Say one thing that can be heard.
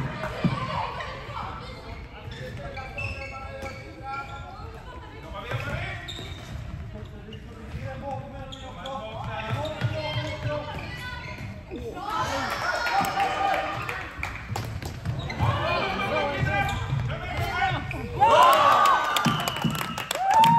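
Young women shout and call to each other across a large echoing hall.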